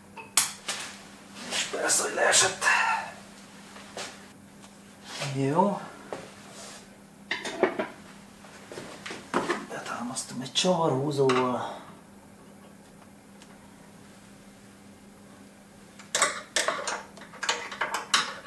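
Metal tools clink and clatter against an engine.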